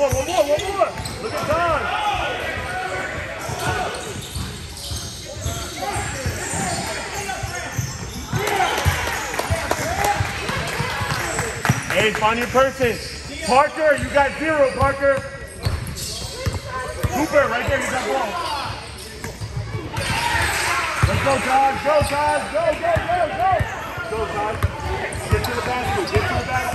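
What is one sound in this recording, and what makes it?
Spectators shout and cheer nearby.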